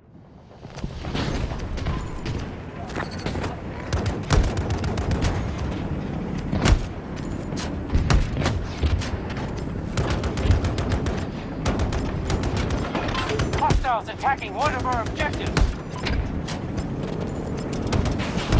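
A light machine gun fires in rapid bursts.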